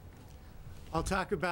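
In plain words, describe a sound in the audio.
A middle-aged man speaks through a microphone.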